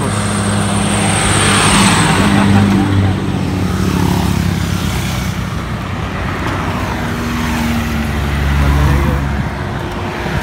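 Cars drive past one after another on the road.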